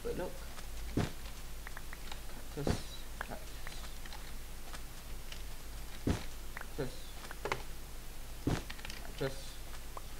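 Blocks break with short crunching thuds, one after another.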